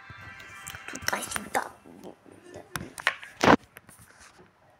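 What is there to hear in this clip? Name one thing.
Hands bump and rub against a phone's microphone.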